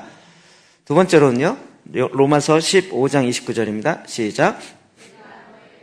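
A middle-aged man speaks with animation into a microphone.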